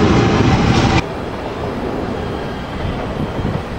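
A train approaches with a quieter hum.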